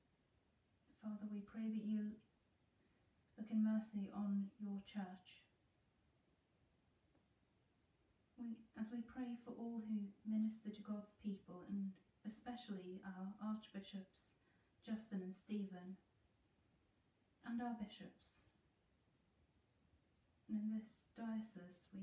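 A woman speaks calmly and slowly into a nearby microphone, with long pauses.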